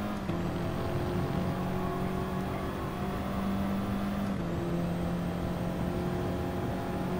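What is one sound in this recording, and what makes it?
A racing car engine drones loudly and shifts up through the gears.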